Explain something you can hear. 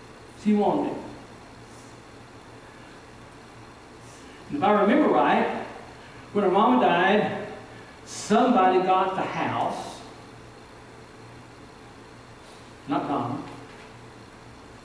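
A man preaches with animation into a microphone, in short bursts with pauses, in a reverberant room.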